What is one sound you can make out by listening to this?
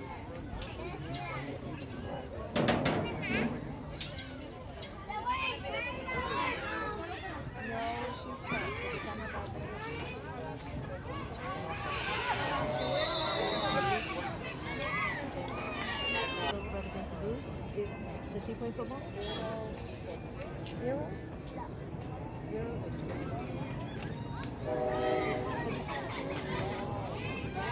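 Young boys chatter and shout outdoors.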